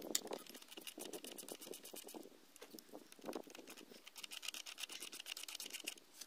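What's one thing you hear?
A socket wrench rattles and clicks against metal.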